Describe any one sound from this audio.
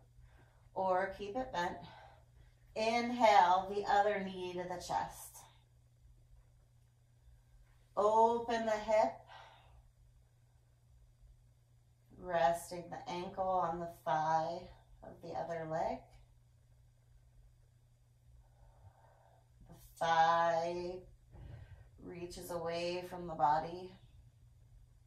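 A woman talks calmly and expressively nearby, in short bursts with pauses.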